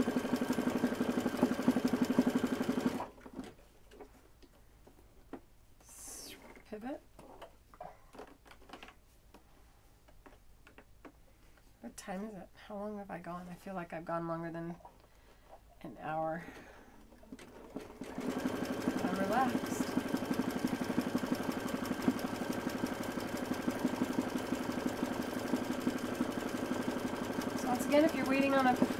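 An embroidery machine hums and clatters rapidly as its needle stitches.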